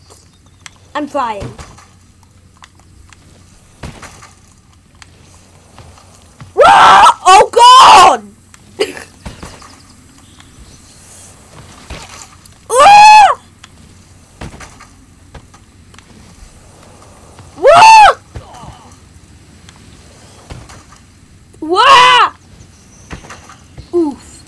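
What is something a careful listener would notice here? A young boy shouts and screams loudly and excitedly into a microphone, close by.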